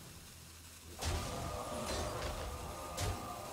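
A magical spell effect whooshes and chimes.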